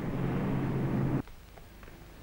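A car engine hums.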